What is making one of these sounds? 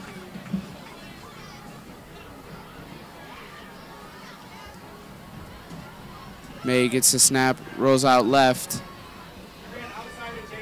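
A crowd of spectators murmurs outdoors.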